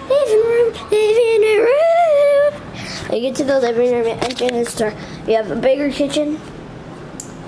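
A child speaks excitedly in a high voice close by.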